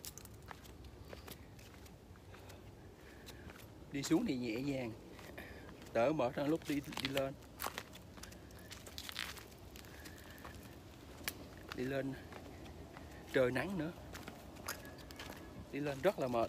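Footsteps crunch on a stone and sandy path.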